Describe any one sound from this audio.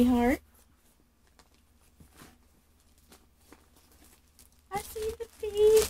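Plastic packing material rustles as a hand rummages in a cardboard box.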